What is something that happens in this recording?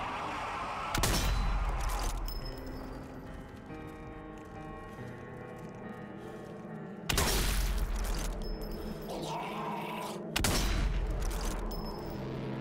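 A sniper rifle fires loud, booming shots that echo away.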